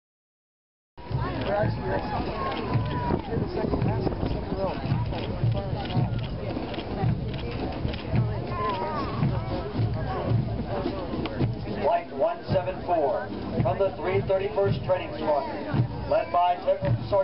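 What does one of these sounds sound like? A column of people marches past with steady, rhythmic footsteps.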